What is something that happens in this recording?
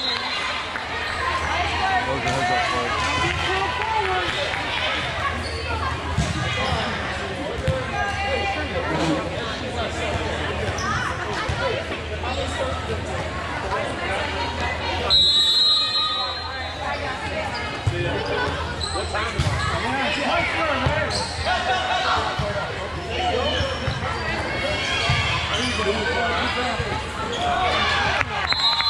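Girls' voices chatter and call out across a large echoing hall.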